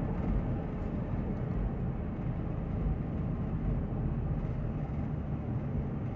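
A truck drives past nearby.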